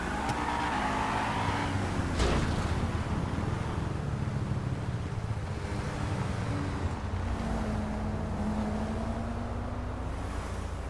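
Tyres roll and hiss on a wet road.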